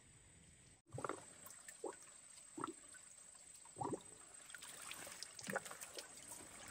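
Water drips and splashes as a man wrings out wet cloth.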